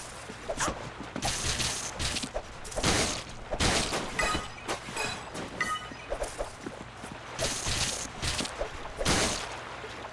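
A weapon swishes and strikes in quick, sharp blows.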